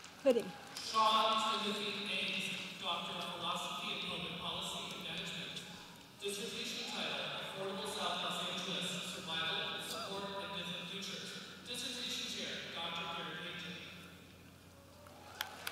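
A man speaks over a loudspeaker in a large echoing hall.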